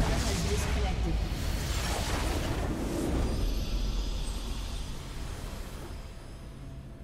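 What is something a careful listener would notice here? A loud explosion booms and crackles, then fades.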